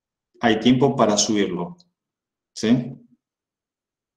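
A young man speaks briefly and casually, close to a microphone.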